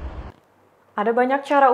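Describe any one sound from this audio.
A young woman speaks clearly into a microphone, like a news presenter.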